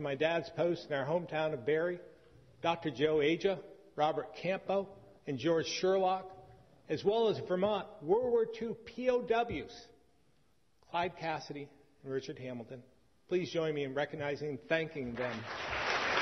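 A middle-aged man speaks calmly and firmly into a microphone, pausing between phrases.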